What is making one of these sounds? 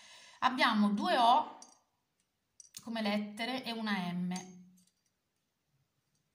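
Small metal charms clink softly as they are handled.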